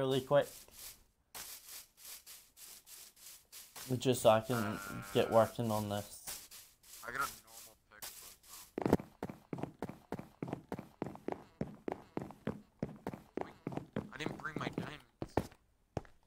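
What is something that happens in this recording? Footsteps crunch steadily over grass and gravel.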